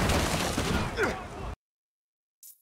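Fire crackles and roars.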